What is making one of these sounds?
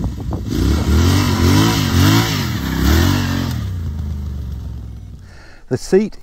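A motorcycle engine revs up and down and fades as it rides away.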